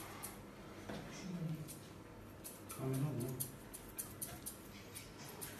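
Scissors snip quickly and lightly.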